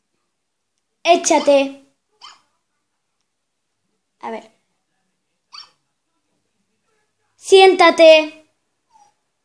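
A small dog yaps twice through a tiny speaker.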